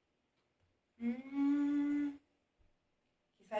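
A man sings a long, steady note.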